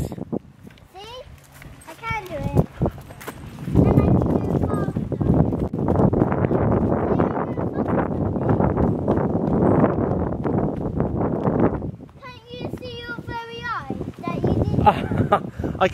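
A boy's bicycle tyres roll on a paved path.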